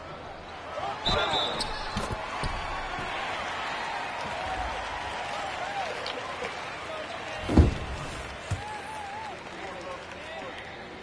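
A crowd murmurs and cheers in an arena.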